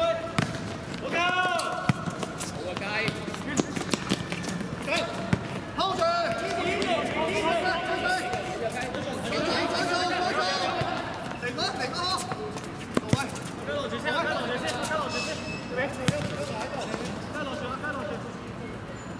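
Young men shout and call out to each other across an outdoor pitch.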